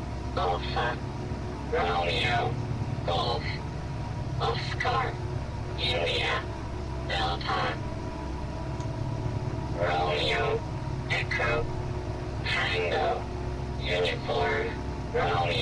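A spaceship's engines hum with a low, steady rumble.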